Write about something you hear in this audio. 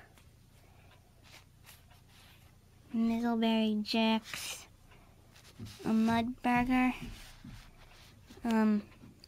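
Stiff cards rustle and slide against each other as they are handled.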